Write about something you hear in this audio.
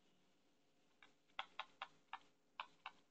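A stylus taps lightly on a tablet.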